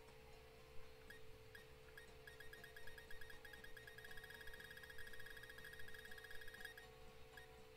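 Electronic menu blips tick rapidly in a quick run.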